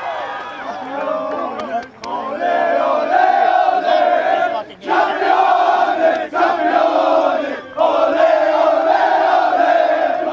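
A crowd of young men shouts and cheers loudly close by.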